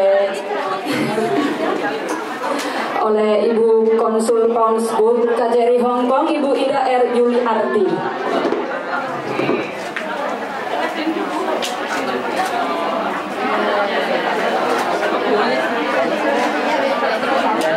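A young man talks into a microphone over loudspeakers.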